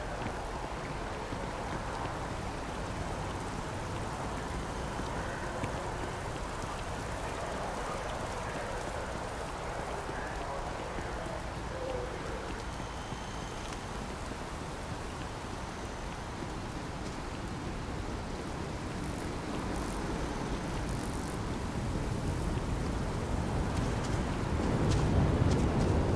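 Footsteps walk steadily on hard paving.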